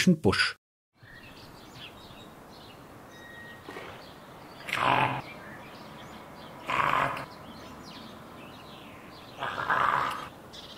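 A soft breeze blows across open ground.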